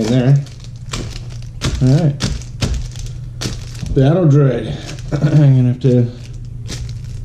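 Small plastic pieces click and rattle on a table.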